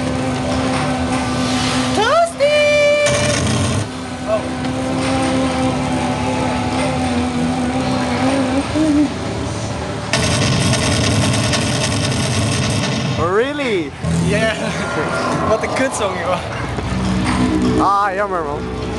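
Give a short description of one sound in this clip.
Electronic dance music and game sounds play loudly from an arcade machine.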